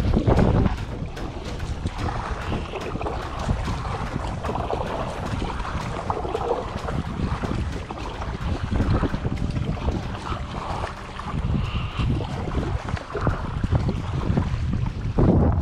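A paddle splashes and dips in water.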